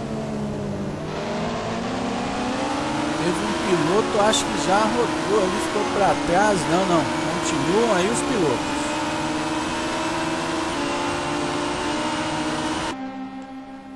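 A race car engine whines steadily at high revs.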